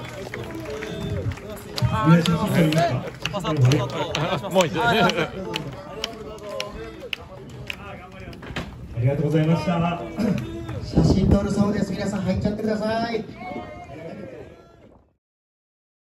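An older man talks into a microphone over loudspeakers.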